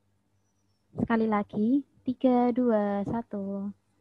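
A young woman speaks calmly through an online call.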